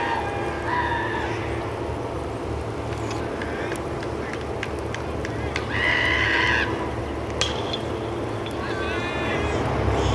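Young men shout and cheer from a distance.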